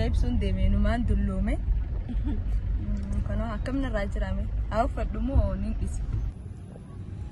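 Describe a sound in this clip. A car engine rumbles low inside a moving car.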